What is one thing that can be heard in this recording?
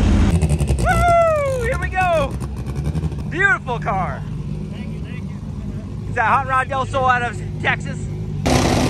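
A race car engine revs in sharp, rising and falling bursts.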